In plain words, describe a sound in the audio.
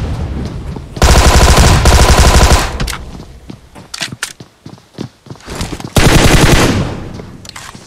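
A rifle fires rapid loud bursts at close range.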